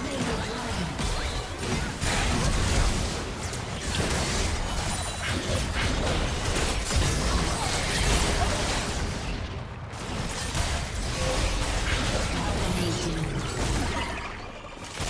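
Magic blasts and weapon hits crackle and clash in a fast battle.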